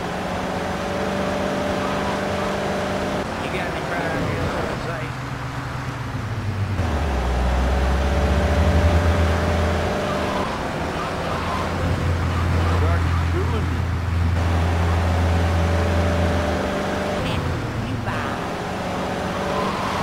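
A car engine hums as the car cruises along a street.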